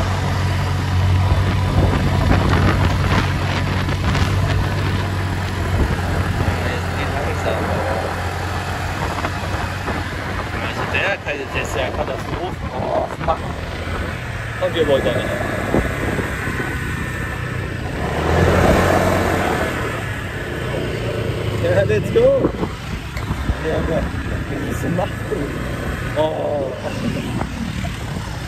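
A scooter engine hums steadily nearby.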